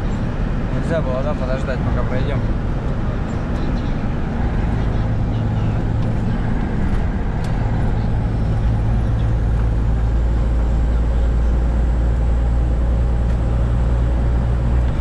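A truck engine drones steadily from inside the cab.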